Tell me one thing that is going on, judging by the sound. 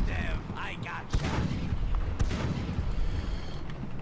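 A cannon fires with a heavy boom.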